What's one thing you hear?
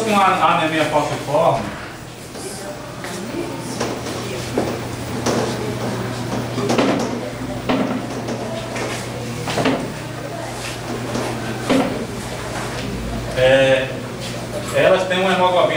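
A man speaks to a small group in a room.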